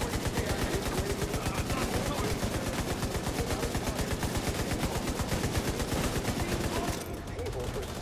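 A rifle fires in rapid automatic bursts.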